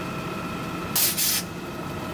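Air hisses sharply from a garbage truck's brakes.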